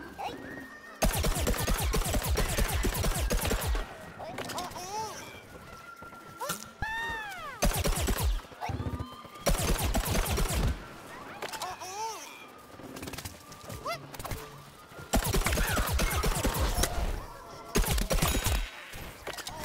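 A weapon fires rapid shots in loud bursts.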